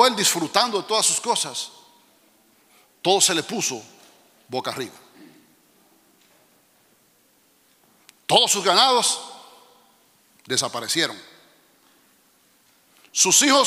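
A middle-aged man speaks with animation through a microphone, in bursts with pauses, in a reverberant hall.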